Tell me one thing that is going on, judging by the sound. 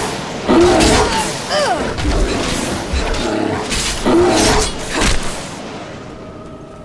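A magic spell hisses and crackles.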